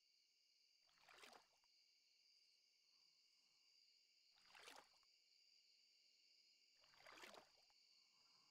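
A fishing bobber splashes into water again and again.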